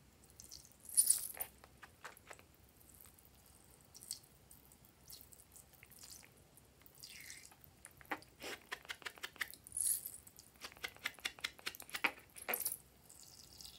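A rubber squeeze toy squelches and clicks as it is squeezed.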